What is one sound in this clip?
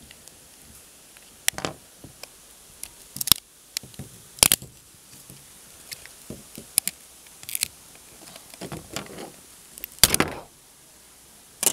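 Plastic parts snap and click as they are pulled apart.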